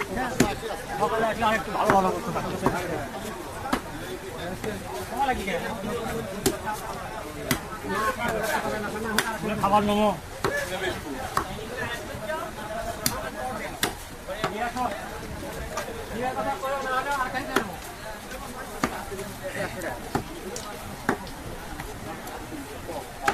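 A cleaver chops through meat onto a wooden block with sharp, repeated thuds.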